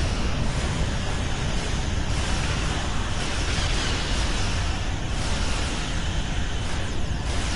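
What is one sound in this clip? Spaceship weapons fire in rapid bursts.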